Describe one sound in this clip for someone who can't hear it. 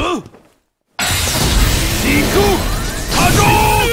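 An energy blast crackles and surges.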